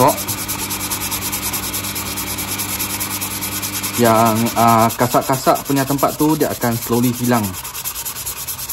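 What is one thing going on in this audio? A brush scrubs rapidly back and forth on a hard shoe.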